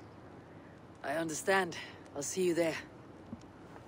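A woman answers calmly and close by.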